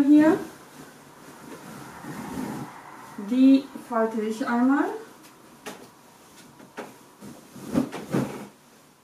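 A duvet rustles and flaps as it is shaken out.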